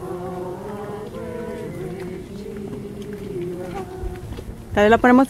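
Men and women sing a slow hymn together outdoors.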